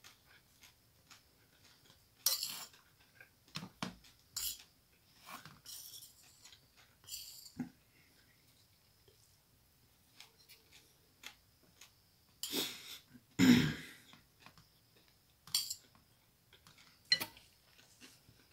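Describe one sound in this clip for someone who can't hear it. A fork scrapes and clinks against a ceramic bowl.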